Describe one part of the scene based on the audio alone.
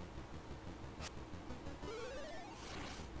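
A short electronic sword swipe sounds.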